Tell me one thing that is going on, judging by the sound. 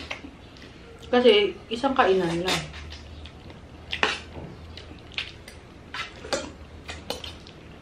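A man chews and eats noisily close to a microphone.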